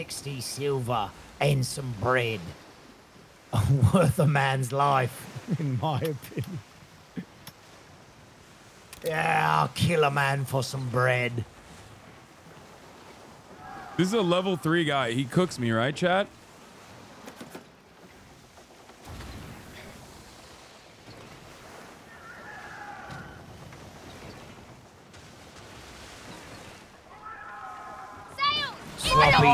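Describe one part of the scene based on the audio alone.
Waves wash and splash around a sailing ship.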